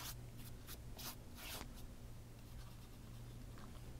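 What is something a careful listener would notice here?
A brush strokes lightly across paper.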